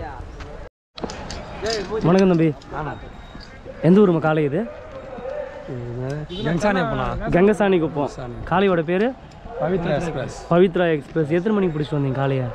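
A young man speaks animatedly, close by.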